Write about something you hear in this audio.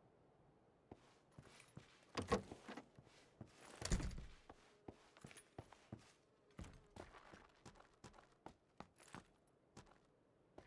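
Footsteps thud quickly across a hard floor indoors.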